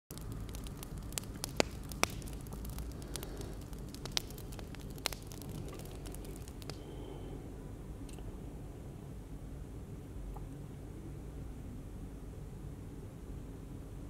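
Distant city traffic rumbles steadily below, heard from high up outdoors.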